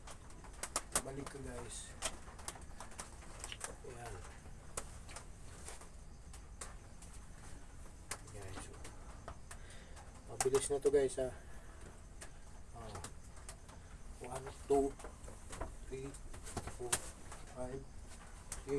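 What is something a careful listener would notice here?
A middle-aged man talks close by, in short bursts.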